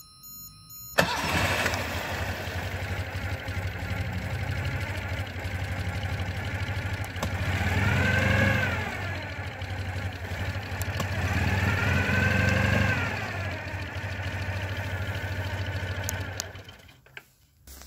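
A car engine starts and idles with a steady rumble.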